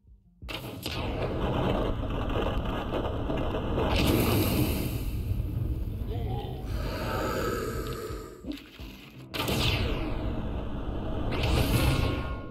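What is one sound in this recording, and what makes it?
Volleys of arrows whoosh and thud in rapid succession.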